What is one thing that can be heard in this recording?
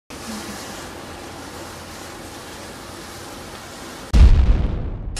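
A bomb fuse fizzes and hisses steadily.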